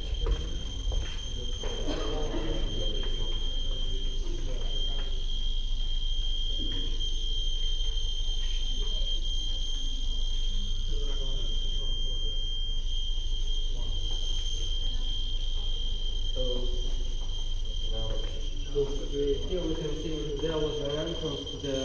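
Footsteps shuffle along a hard floor.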